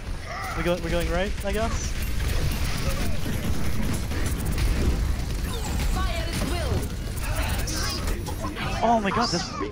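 Rapid gunfire rattles with loud blasts.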